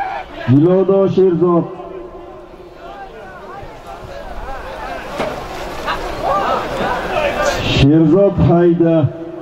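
A crowd of men shouts and calls out outdoors.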